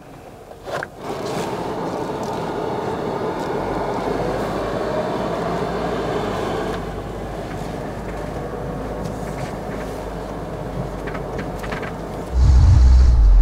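A car engine hums steadily and revs as the car pulls away.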